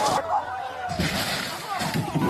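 A car smashes through a camper with a loud crash.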